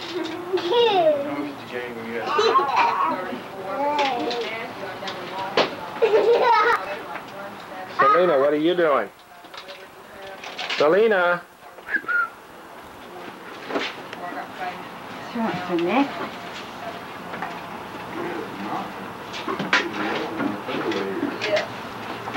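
A baby babbles and squeals nearby.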